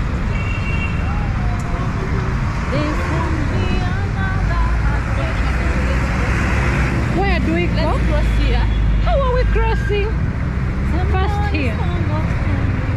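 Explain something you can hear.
City traffic hums and rumbles steadily outdoors.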